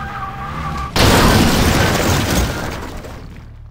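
A car crashes into bushes with a loud crunching thud.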